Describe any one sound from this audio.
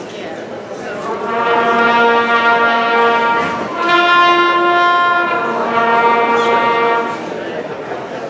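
A woman sings into a microphone through loudspeakers.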